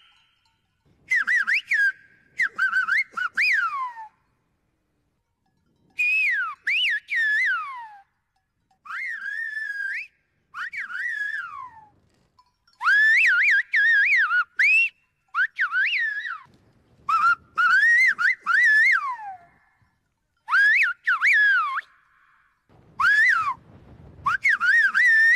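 An older man answers with sliding whistled calls through his fingers.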